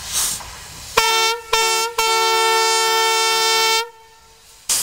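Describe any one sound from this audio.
A steam locomotive's whistle blows loudly and steadily.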